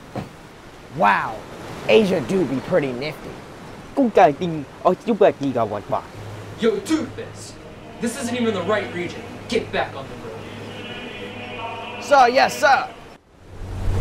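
A young man speaks to the listener with animation, close by.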